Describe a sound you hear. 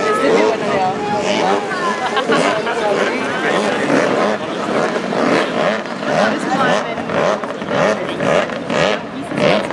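Several men talk at once outdoors.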